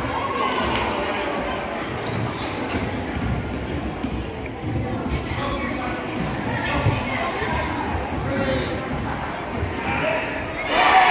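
Spectators and players call out in a large echoing gym.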